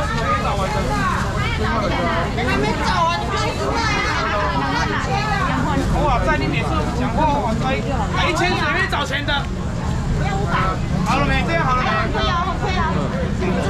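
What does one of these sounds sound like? A crowd of men and women talk and call out at once, close by, in a busy echoing room.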